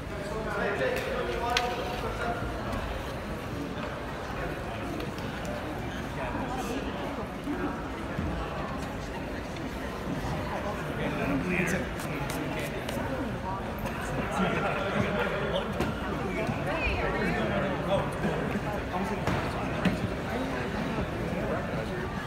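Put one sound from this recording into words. Several men and women chatter at a distance in a large echoing hall.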